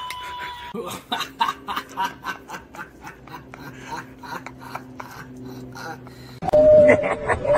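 A man laughs loudly outdoors.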